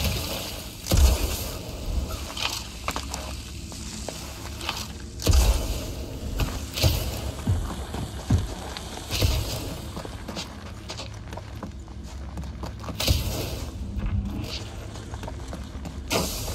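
Footsteps thud on rough stone.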